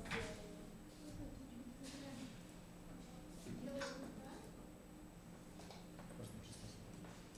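Teenage boys talk quietly nearby.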